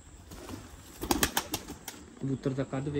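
A pigeon's wings flap loudly as it takes off.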